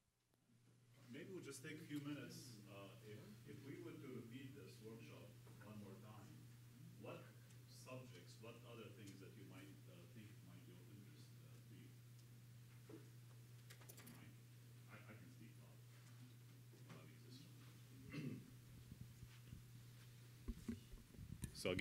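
A middle-aged man speaks calmly through a microphone and loudspeakers.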